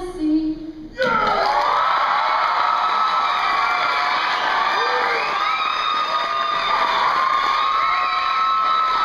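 A choir of young women sings together without instruments, heard in a large hall.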